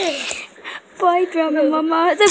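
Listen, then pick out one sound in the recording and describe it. A young girl sings close by in a high voice.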